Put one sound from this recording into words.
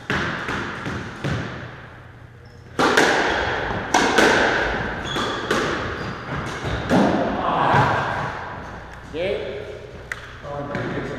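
A squash ball smacks hard against the walls, echoing in a bare court.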